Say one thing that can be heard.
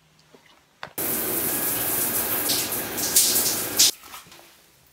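Shower water sprays and splashes steadily.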